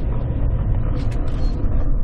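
A handle turns on a metal door with a clank.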